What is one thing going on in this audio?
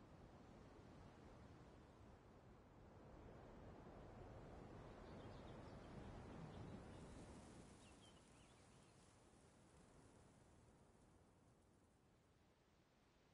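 Wind blows softly through grass.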